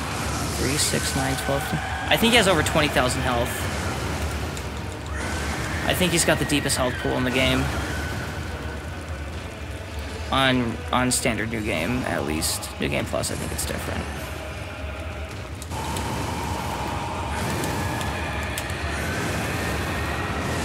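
Fire roars and explosions burst.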